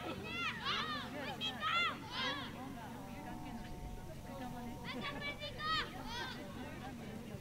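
Children shout to each other across an open field outdoors.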